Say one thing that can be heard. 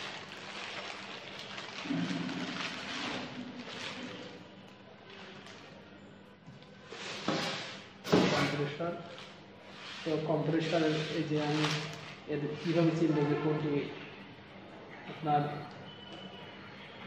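Plastic crinkles and rustles as it is handled.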